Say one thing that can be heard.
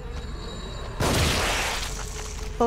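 A revolver fires a loud shot that echoes briefly.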